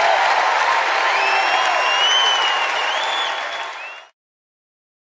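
A person in a crowd whistles shrilly.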